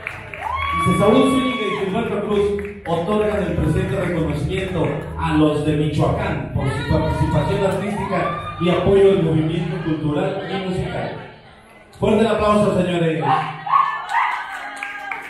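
A man announces loudly and with animation through a microphone and loudspeakers.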